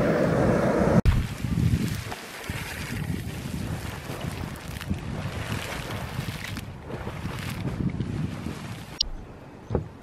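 A hot spring pool gurgles and splashes outdoors.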